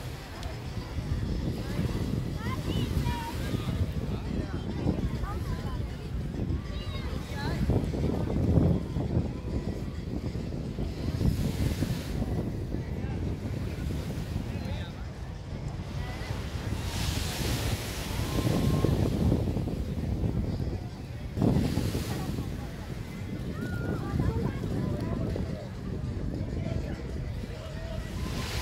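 Adults and children chatter faintly in the distance.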